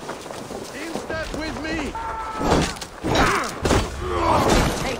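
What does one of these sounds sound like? Men grunt and shout while fighting.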